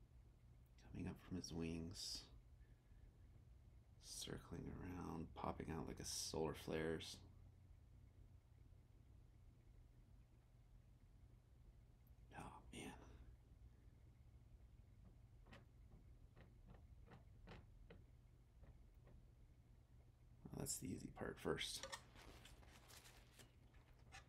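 A man talks calmly close by, in short bursts.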